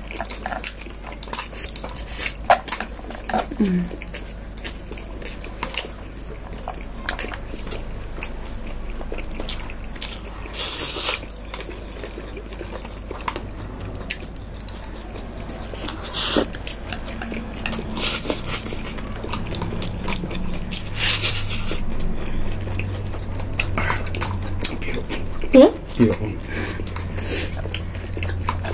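A man and a young woman chew and smack their lips up close.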